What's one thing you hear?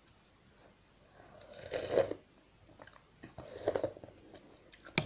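A woman slurps noodles loudly and chews close by.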